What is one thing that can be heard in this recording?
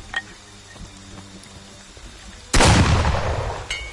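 A heavy bat swings and strikes with a loud thud.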